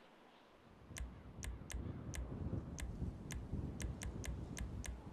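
A game menu ticks with short clicks as options change.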